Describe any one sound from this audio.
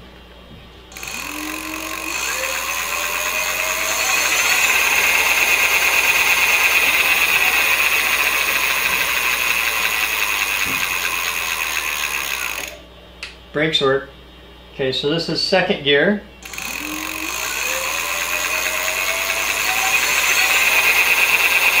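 An electric bike motor whirs, rising in pitch and then holding steady.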